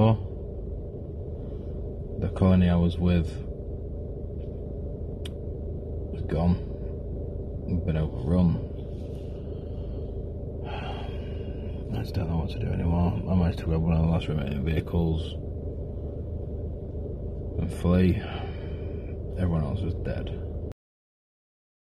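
A man talks calmly and close by, in short bursts.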